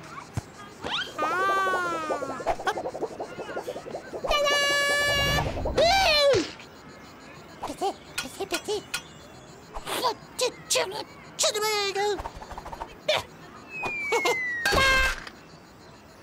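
A cartoon chick squeaks and chirps in a high, animated voice.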